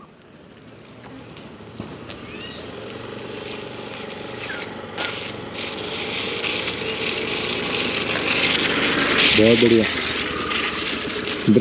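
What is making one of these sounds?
A motorcycle engine hums in the distance and grows louder as the motorcycle rides closer.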